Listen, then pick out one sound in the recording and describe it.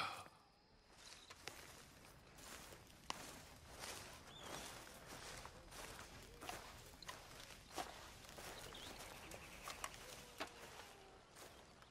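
Footsteps swish and thud through grass.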